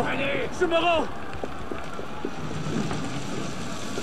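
Fire crackles.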